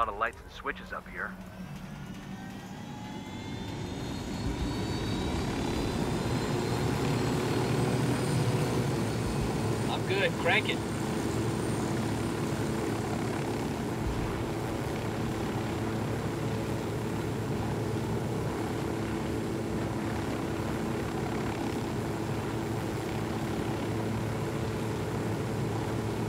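A helicopter's rotor thumps steadily, growing louder as it lifts off.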